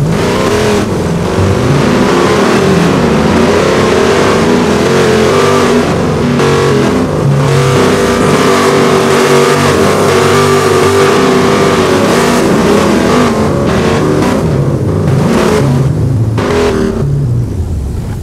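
A pickup truck engine revs hard and roars as it climbs a rough dirt track.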